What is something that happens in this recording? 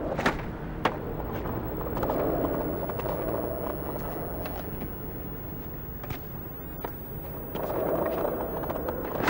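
Skateboard wheels roll over concrete.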